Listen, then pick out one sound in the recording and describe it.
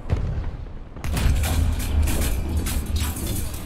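A vehicle explodes with a deep, rumbling blast.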